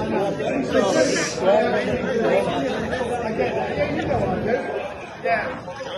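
A crowd chatters in a busy room.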